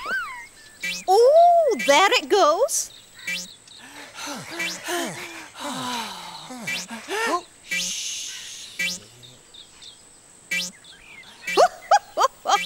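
A bird puppet chirps and squawks in high, sliding tones.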